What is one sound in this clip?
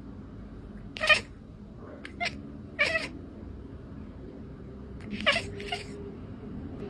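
A cat meows loudly several times.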